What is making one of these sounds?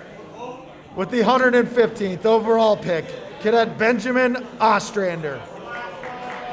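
A man speaks loudly and firmly in a large room.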